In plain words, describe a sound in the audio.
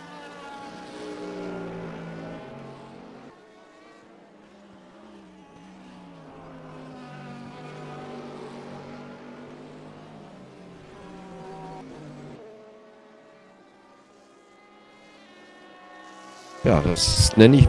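Racing car engines drone and change pitch as the cars shift gears.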